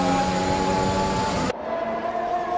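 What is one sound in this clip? A racing car engine screams loudly up close.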